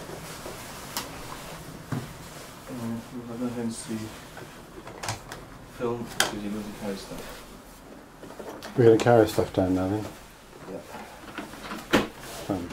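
Objects knock and rattle as they are handled nearby.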